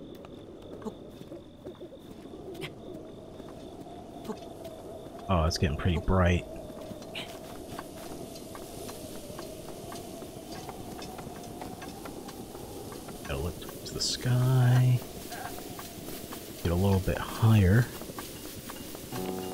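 Hands and feet scrabble on a grassy slope while climbing.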